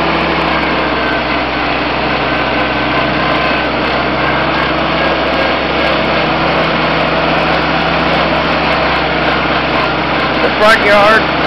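A tractor engine chugs and rattles steadily close by.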